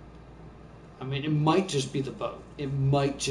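A young man speaks into a close microphone.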